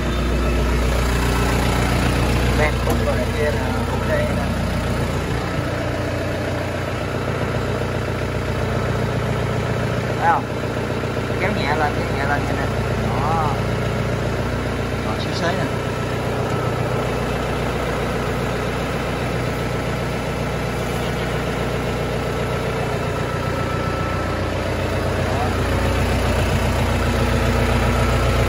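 A small tractor engine idles with a steady low rumble.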